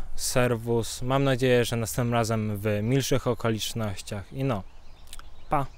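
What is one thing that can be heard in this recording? A young man speaks with animation into a microphone close by.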